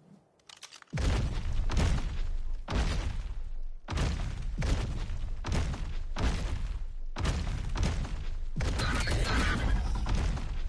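Large wings beat heavily in a steady rhythm.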